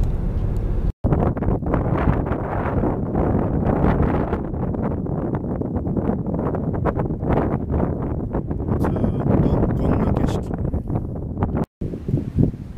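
Wind blows hard and gusts against the microphone outdoors.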